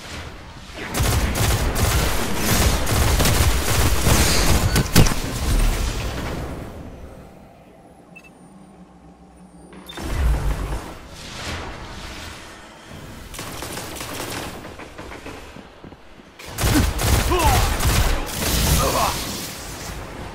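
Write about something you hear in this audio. Gunfire and explosions boom loudly in a video game.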